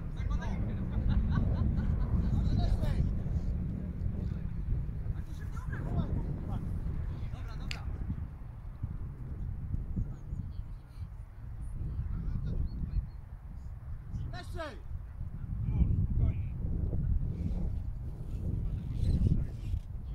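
Men shout and call to each other across a playing field in the distance.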